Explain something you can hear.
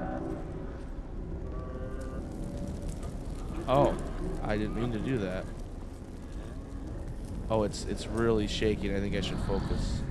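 A torch flame flickers and crackles softly.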